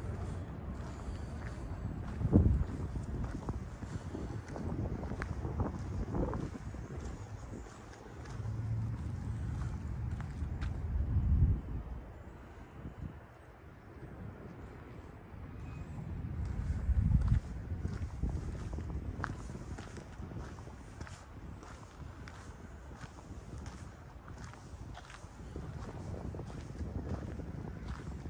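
Wind gusts outdoors, rumbling in bursts.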